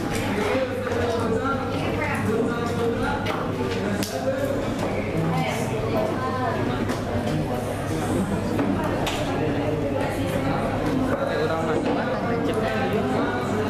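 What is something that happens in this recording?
Young people chatter in the background.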